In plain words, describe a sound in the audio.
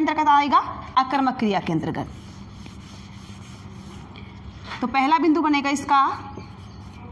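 A woman speaks clearly and calmly, as if teaching, close by.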